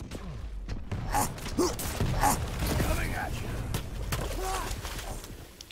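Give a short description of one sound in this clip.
Game weapons fire with sharp electronic blasts.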